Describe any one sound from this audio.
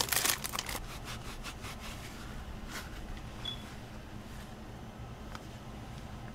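A damp sponge squishes as it is squeezed.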